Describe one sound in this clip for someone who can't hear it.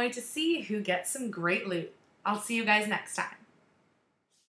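A young woman speaks excitedly and close up.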